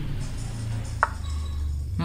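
A chess piece clicks once as it is moved.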